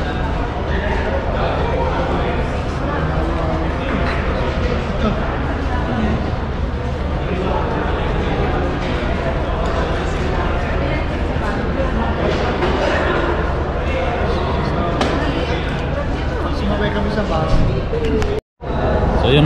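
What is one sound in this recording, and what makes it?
Several people chat at a table.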